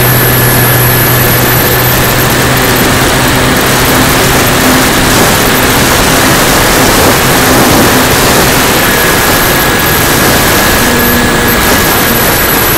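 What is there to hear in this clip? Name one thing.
A small propeller motor whines steadily.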